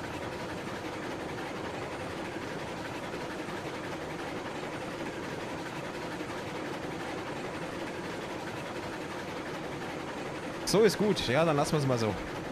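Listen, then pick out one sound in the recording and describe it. A steam locomotive chugs steadily while rolling along the tracks.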